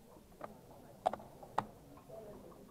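A game clock button is pressed with a click.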